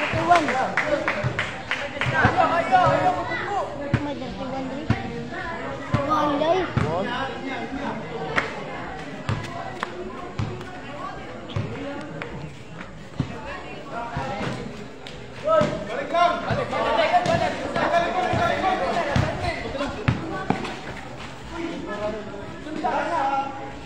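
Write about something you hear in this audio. A basketball bounces on a concrete court.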